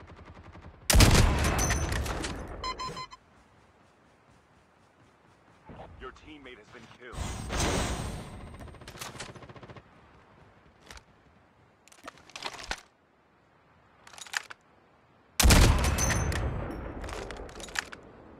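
A sniper rifle fires a loud, booming shot that echoes away.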